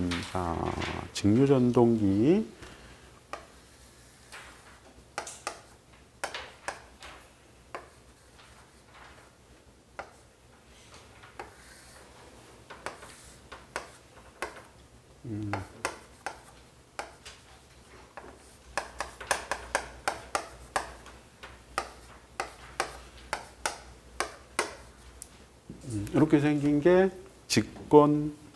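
A middle-aged man speaks calmly, as if lecturing, close by.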